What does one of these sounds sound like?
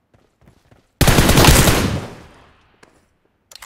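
A smoke grenade bursts with a loud, fading hiss.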